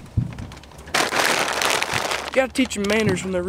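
A plastic sack rustles and crinkles.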